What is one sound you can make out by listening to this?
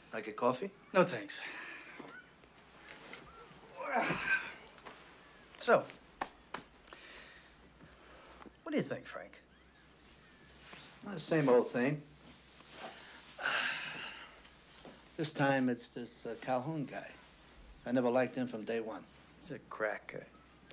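A middle-aged man speaks calmly and seriously nearby.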